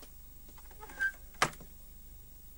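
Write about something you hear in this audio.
A wooden door thuds shut.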